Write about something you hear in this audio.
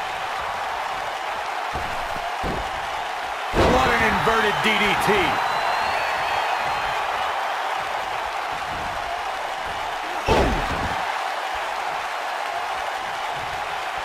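A large crowd roars and cheers steadily in a big arena.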